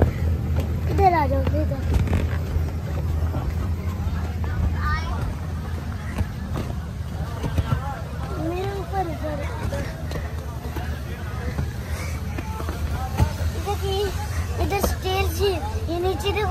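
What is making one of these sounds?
A young girl talks and squeals close by.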